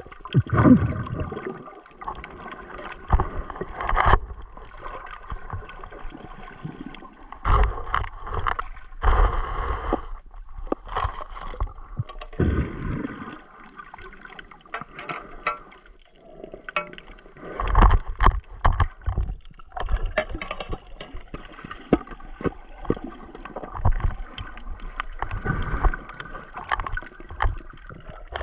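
Water swishes and rumbles in muffled bursts underwater.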